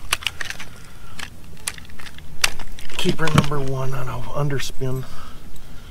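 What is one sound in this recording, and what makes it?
Fishing gear clicks and rattles in a man's hands.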